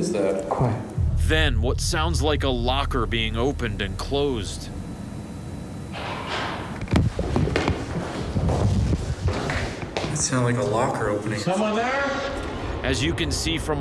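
A man speaks in a low voice close by.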